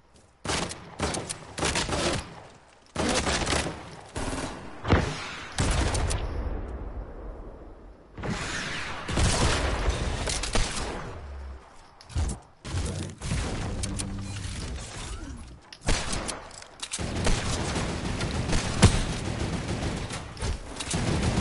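Wooden walls clatter quickly into place.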